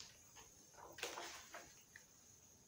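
A page of a book turns with a papery rustle.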